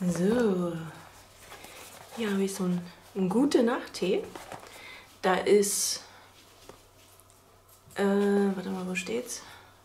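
A cardboard box scrapes and taps as it is handled.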